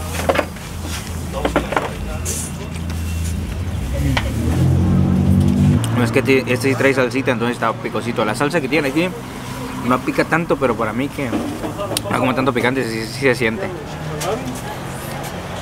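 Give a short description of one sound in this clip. A young man chews and bites into crunchy food.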